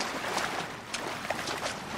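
Water splashes as a creature thrashes in it.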